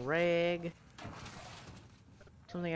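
A metal filing cabinet drawer slides open.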